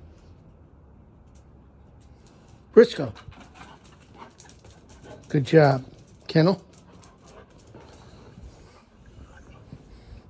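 A dog's paws patter on concrete.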